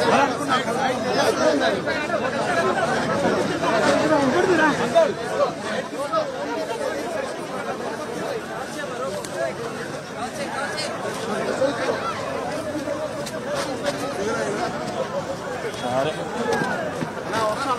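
A large crowd of men chatters and shouts nearby outdoors.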